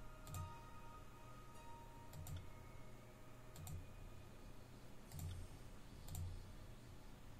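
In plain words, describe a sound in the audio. Soft menu clicks sound every second or two.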